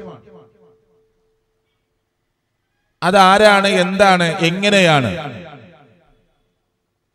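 A man speaks loudly and forcefully into a microphone, with some echo in a hall.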